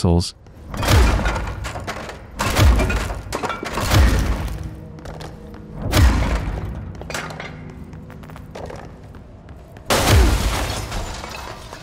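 Loud blasts boom and debris crashes and scatters.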